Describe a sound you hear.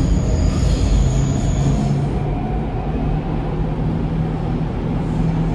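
A train rumbles and hums steadily while moving along the track.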